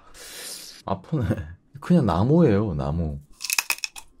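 A young man speaks softly close to a microphone.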